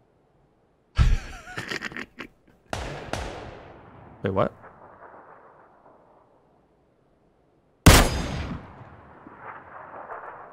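A rifle fires loud single shots that echo and fade.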